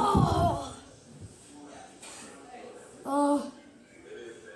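A young boy cries out theatrically.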